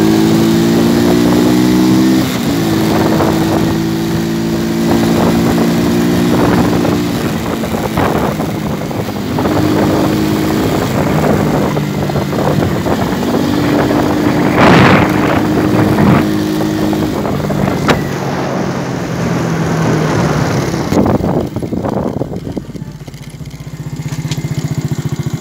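A scooter engine hums steadily while riding, changing pitch with speed.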